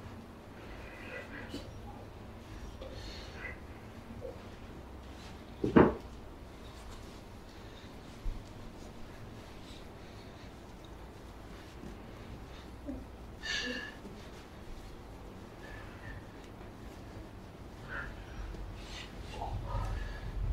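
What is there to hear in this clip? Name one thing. Hands rub and knead bare skin softly.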